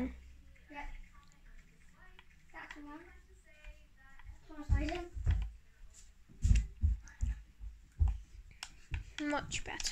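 Buttons click softly on a game controller.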